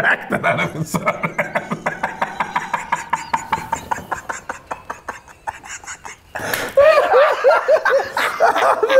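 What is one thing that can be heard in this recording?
A young man laughs loudly and hysterically close by.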